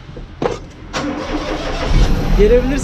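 A man speaks nearby in a cheerful voice.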